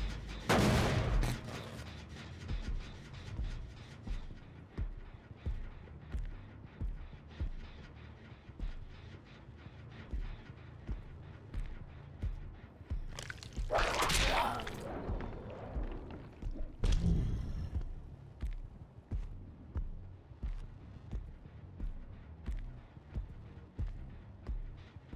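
Heavy footsteps thud steadily in an even rhythm.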